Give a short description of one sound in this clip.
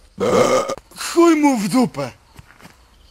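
A young man speaks loudly.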